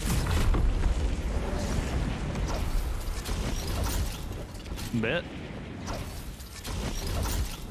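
Wind rushes loudly past a skydiving figure.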